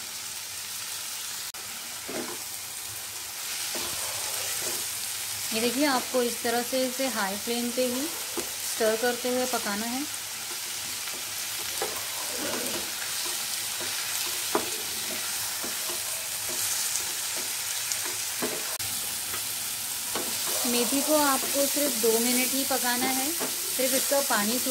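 Greens sizzle softly in a hot pan.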